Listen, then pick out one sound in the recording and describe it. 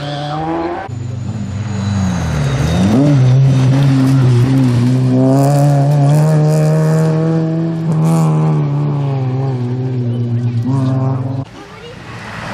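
A second rally car engine roars past, revving hard, and fades down the road.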